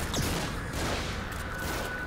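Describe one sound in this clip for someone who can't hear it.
A fire explodes with a loud roar.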